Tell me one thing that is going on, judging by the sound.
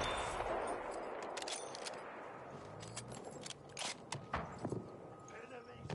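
A rifle bolt clacks as it is worked.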